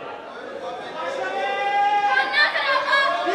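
A woman speaks sharply and loudly through a stage microphone.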